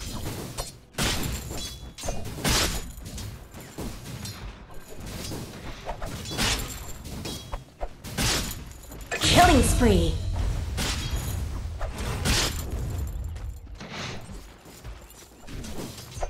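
Fight sound effects from a video game clash and crackle.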